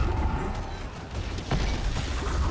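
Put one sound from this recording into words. Fire roars and crackles in bursts.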